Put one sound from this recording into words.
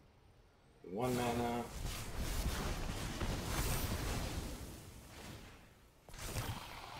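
A magical spell whooshes and crackles with a loud burst.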